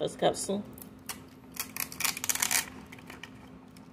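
Foil wrapping crinkles and tears.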